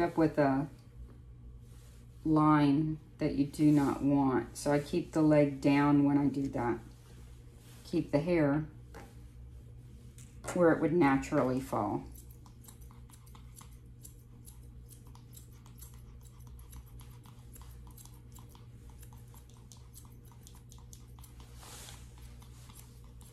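A comb brushes through a dog's fur.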